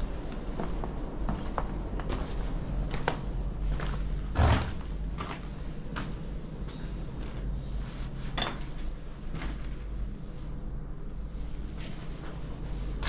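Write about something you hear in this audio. Footsteps crunch over loose rubble and broken tiles.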